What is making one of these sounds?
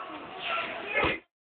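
A body lands with a thud on a gym mat.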